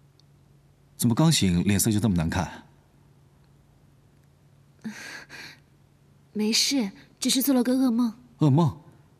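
A young man speaks with concern, close by.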